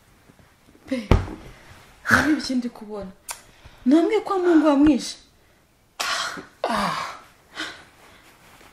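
A woman speaks softly up close.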